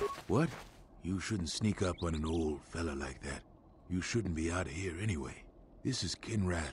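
An elderly man speaks gruffly, close by.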